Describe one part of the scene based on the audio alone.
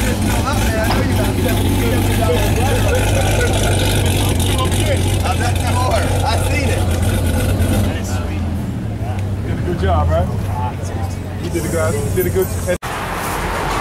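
A supercharged V8 sports car idles with a deep rumble close to the exhaust.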